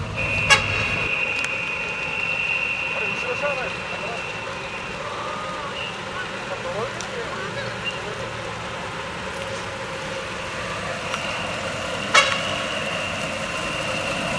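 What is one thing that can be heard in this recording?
A large truck engine idles and rumbles as it pulls forward.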